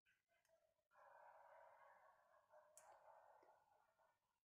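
A pencil scratches lightly across paper.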